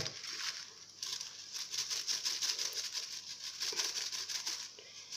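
A metal mesh sieve is shaken and tapped.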